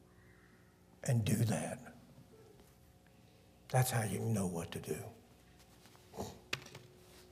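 An elderly man speaks with emphasis into a microphone, in short bursts with pauses.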